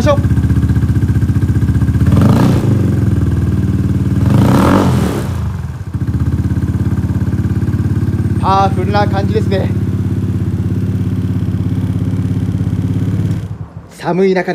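A scooter engine idles steadily nearby, then stops.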